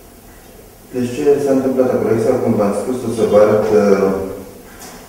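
A middle-aged man talks calmly nearby.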